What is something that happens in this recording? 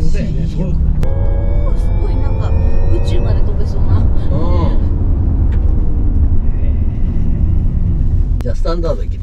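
A woman talks with animation inside a car.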